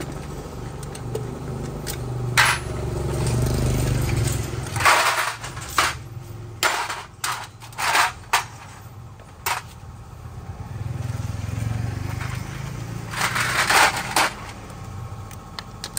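Metal parts clink and clatter against each other.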